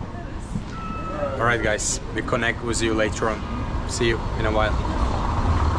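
A bearded man speaks cheerfully close by.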